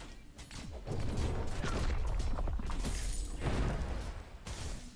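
Magic explosions rumble loudly and crackle.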